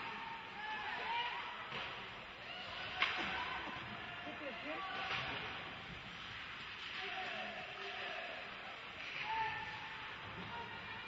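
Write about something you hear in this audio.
A crowd murmurs and calls out in an echoing ice rink.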